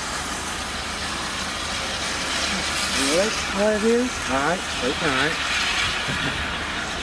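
A steam locomotive rumbles and chuffs as it approaches slowly on the tracks.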